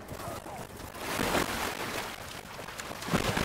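Water splashes as a figure swims through it.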